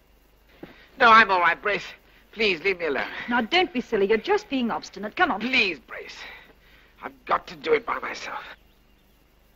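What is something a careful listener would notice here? A woman speaks urgently and close by.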